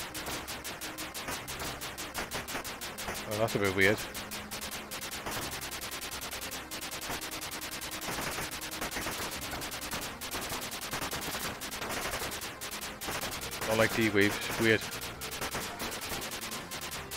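Rapid electronic gunfire from a retro video game rattles steadily.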